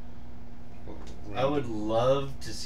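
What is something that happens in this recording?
A middle-aged man speaks briefly and calmly into a microphone.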